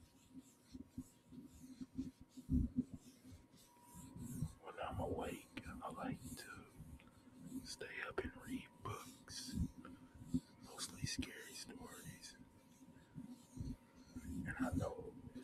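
Fingers tap and click on a phone case.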